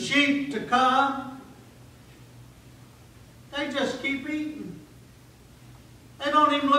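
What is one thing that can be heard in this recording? An older man speaks with animation through a microphone, pausing between phrases.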